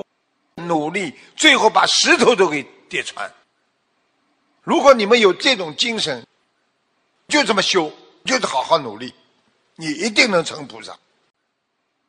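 An elderly man speaks calmly and warmly through a microphone, in short phrases with pauses.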